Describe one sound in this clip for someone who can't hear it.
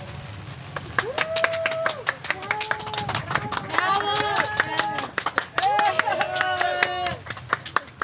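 Young women laugh and cheer with excitement.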